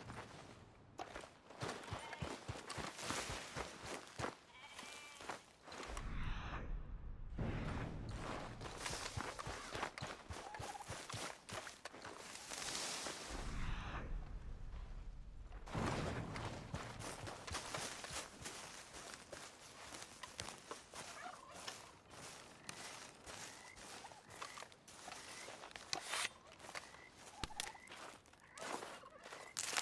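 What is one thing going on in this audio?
Footsteps crunch through leaves and undergrowth at a quick pace.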